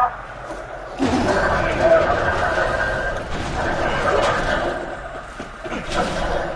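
A heavy metal door scrapes and grinds as it slides open.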